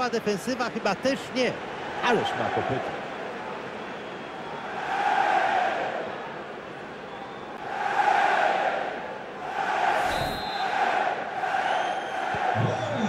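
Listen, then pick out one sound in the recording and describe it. A large stadium crowd roars and cheers in swelling waves.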